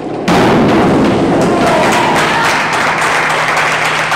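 A diver plunges into a pool with a loud splash in an echoing hall.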